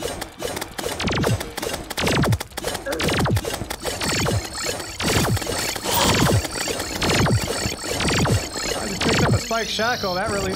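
Video game fireballs whoosh down and boom repeatedly.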